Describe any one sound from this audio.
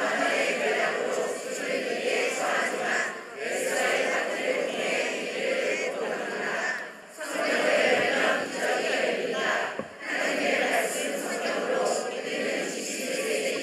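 A large choir of men and women sings together in a big echoing hall.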